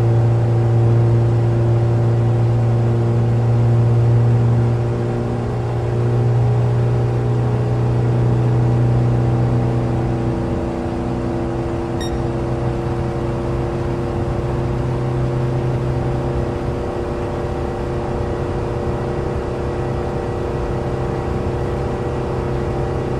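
A small car engine drones steadily from inside the cabin.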